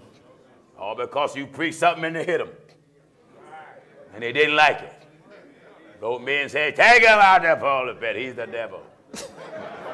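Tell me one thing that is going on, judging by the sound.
A man preaches loudly and with animation through a microphone in an echoing hall.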